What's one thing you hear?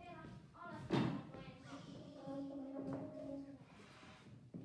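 Saxophones play short, held notes.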